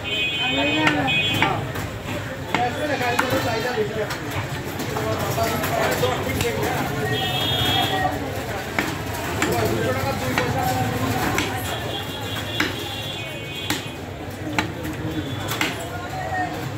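A cleaver chops meat against a wooden block with sharp repeated thuds.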